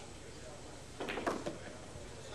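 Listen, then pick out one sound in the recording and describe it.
A cue stick strikes a billiard ball with a sharp click.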